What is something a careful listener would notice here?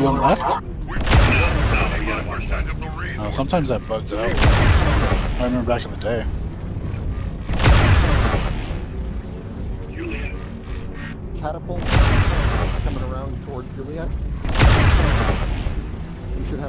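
Heavy weapons fire and explosions boom in loud bursts.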